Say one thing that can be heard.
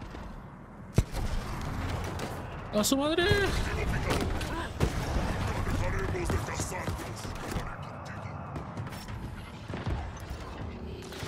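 Gunfire bursts out in quick shots.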